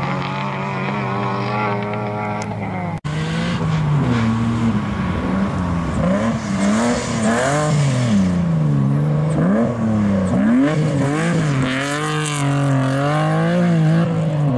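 Gravel sprays and rattles under spinning tyres.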